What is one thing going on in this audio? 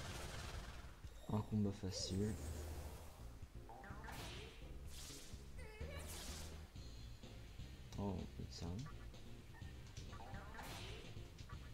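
Electronic game sound effects chime and crackle.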